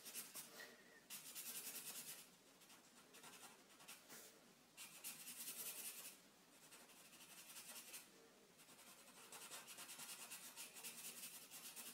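A marker squeaks and scratches across paper in short strokes.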